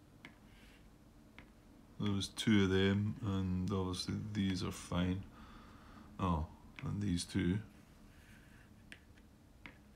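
Small cardboard game pieces click softly as they are picked up and set down with tweezers.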